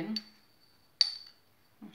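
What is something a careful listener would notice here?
A metal spoon clinks against a glass.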